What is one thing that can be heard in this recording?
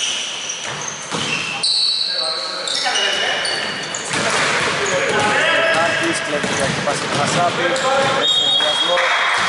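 Men shout to each other during a basketball game in an echoing gym.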